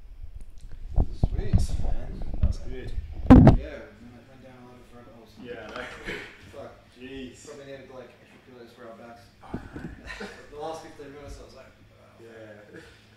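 A second man talks and laughs casually, a little farther off.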